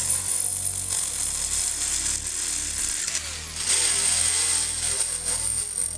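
A drill whines steadily as the bit grinds into metal.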